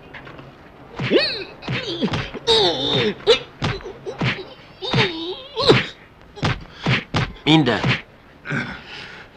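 A man speaks close by with animation, his voice rising and falling.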